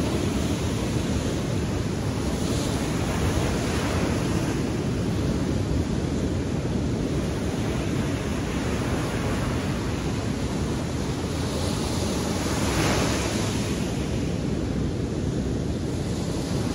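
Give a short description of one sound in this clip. Waves crash and wash onto the shore.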